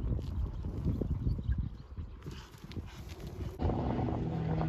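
A horse's hooves thud on grass at a canter.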